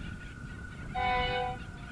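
A train horn blares loudly.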